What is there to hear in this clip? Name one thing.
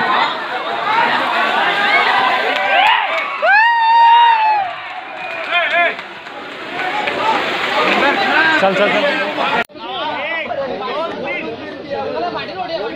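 A crowd of men shout and chatter excitedly nearby.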